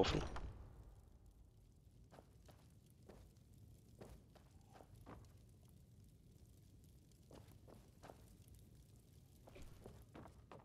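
A young man speaks quietly and calmly into a microphone.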